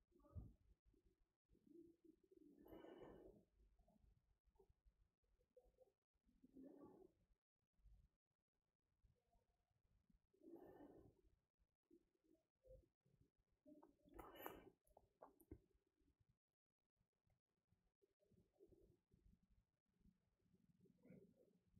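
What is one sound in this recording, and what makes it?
A young woman speaks quietly and calmly through a microphone, in short bursts with pauses.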